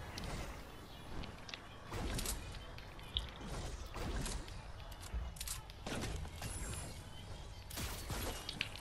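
Building pieces snap into place with quick, repeated clunks and thuds.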